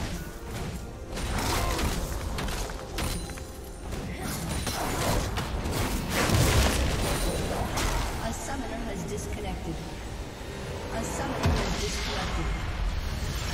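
Magic spells crackle and blast in a busy fantasy battle.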